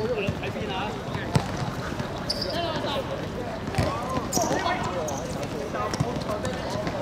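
A football is kicked on a hard court.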